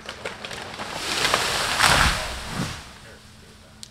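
An explosion booms outdoors and rumbles as it fades.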